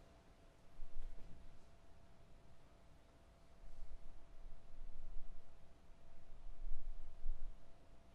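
A brass band plays softly in a large hall.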